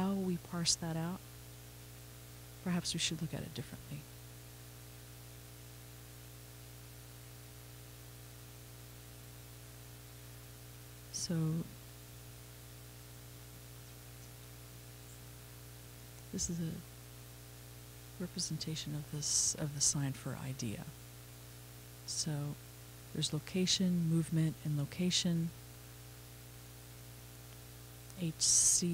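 A man lectures calmly through a microphone in a large room, pausing often.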